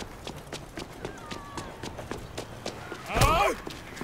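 Quick footsteps run on pavement.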